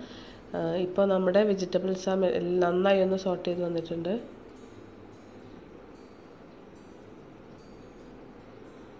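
A wooden spatula scrapes and stirs food in a frying pan.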